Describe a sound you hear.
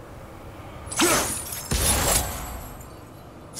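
Heavy chains rattle and clank as they swing.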